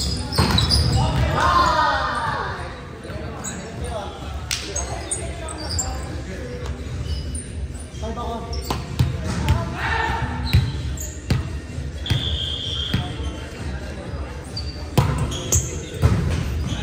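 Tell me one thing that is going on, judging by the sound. Sneakers squeak on the gym floor.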